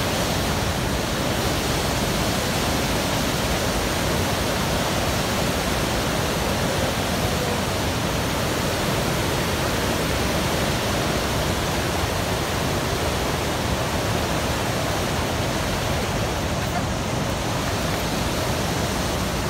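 Rapids rush and roar loudly and steadily.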